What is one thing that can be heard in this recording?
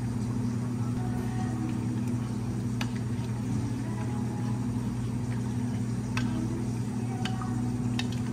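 A spoon clinks against a glass jug while stirring.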